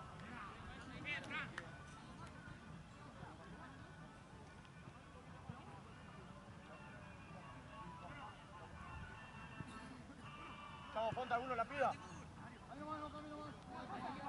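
Men shout to each other at a distance outdoors.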